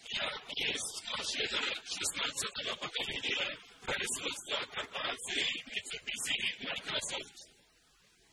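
A man speaks with animation into a headset microphone.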